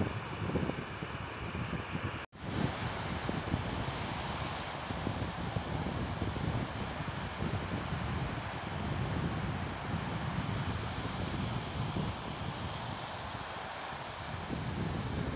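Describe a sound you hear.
Small waves break and wash up onto a sandy beach.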